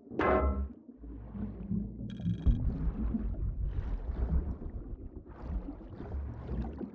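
Air bubbles gurgle and burble underwater.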